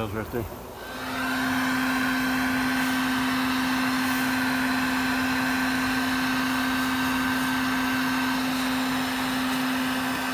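A vacuum hums steadily as its nozzle sucks up bees.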